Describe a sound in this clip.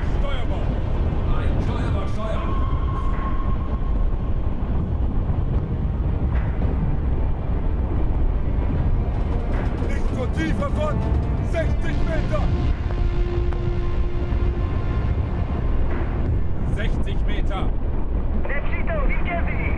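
A submarine engine rumbles low and steady underwater.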